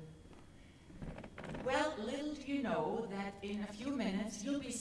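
A woman speaks into a microphone, heard through loudspeakers in a large hall.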